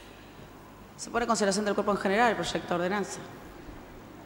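A woman speaks clearly into a microphone.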